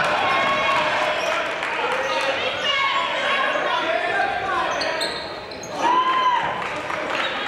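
Spectators murmur and call out in an echoing gym.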